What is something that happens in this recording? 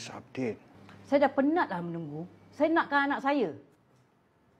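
A middle-aged woman speaks tearfully.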